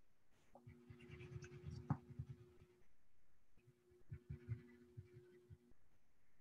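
A pastel stick scratches softly on paper.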